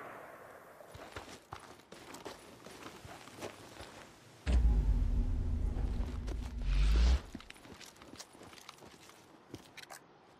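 Footsteps crunch on grass and pavement.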